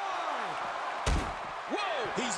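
A heavy thud of a body blow lands once.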